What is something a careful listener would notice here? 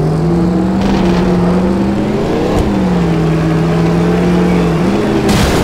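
A car engine drones steadily at high revs, its pitch dipping and rising with gear shifts.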